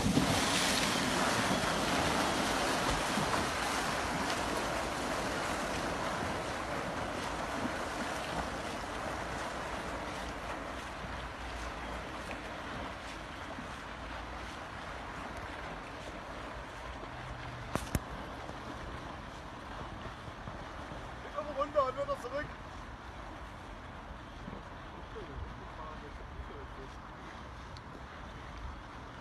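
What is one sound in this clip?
Water churns and splashes behind a moving craft.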